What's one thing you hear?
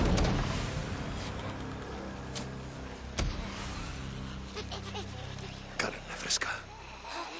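A knife cuts wetly through flesh.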